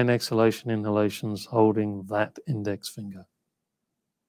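An older man speaks calmly through a headset microphone on an online call.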